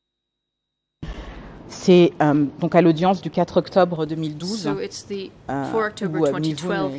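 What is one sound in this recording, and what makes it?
A woman speaks calmly into a microphone.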